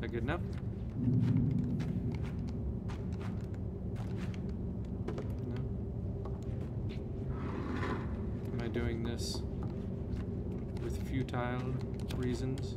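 A wooden chair creaks and thumps as a small figure climbs onto it.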